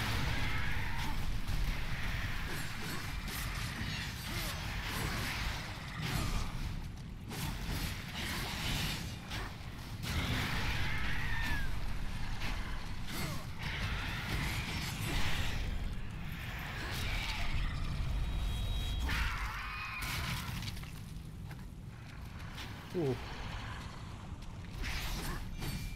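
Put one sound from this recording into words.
Water splashes as a warrior runs and fights.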